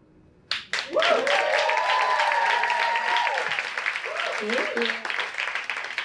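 A woman cheers loudly into a microphone.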